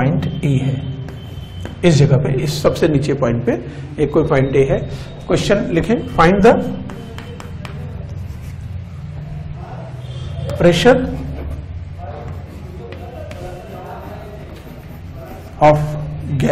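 A man speaks calmly and clearly, as if lecturing.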